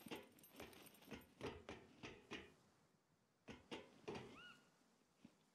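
Footsteps clang on metal grating stairs.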